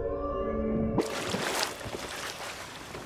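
A swimmer breaks the surface with a splash.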